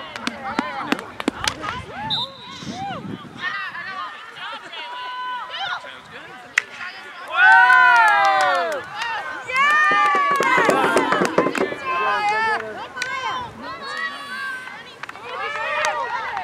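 A hockey stick strikes a ball with a sharp crack.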